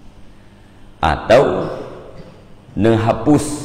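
A middle-aged man speaks calmly and slowly into a microphone, close by.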